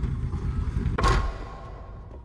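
A heavy platform lands with a loud thud.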